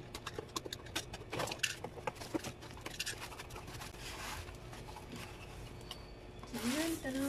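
A cardboard box rustles and scrapes as it is opened.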